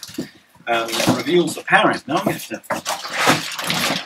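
Cardboard rustles and scrapes inside a box.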